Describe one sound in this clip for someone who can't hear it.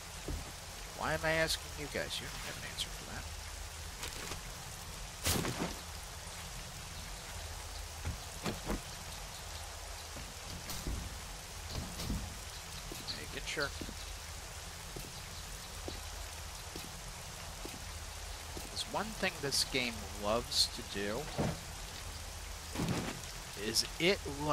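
A man talks casually into a close microphone, in short bursts.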